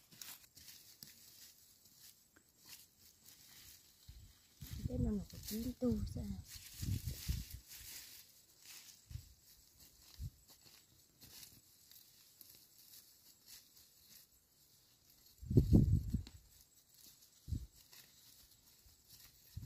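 A knife cuts through plant stems with crisp snips.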